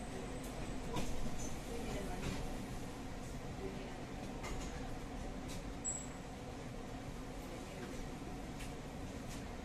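Metal fittings of a tram carriage rattle and clack now and then.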